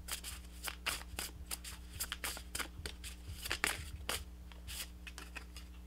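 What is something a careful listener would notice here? Playing cards shuffle with quick, soft flicks.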